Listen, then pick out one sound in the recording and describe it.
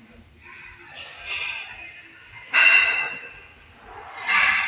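A man exhales sharply with each lift.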